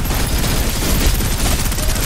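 A lightning strike crashes with a loud electric roar.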